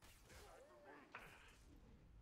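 An energy blast crackles and bursts.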